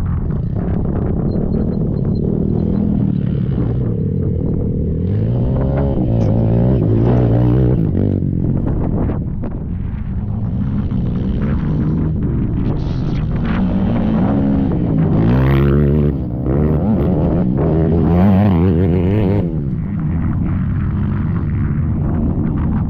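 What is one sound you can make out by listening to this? Engines of distant quad bikes drone on a trail.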